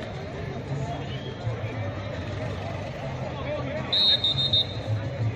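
A crowd of men shout and call out across an open field, some distance away.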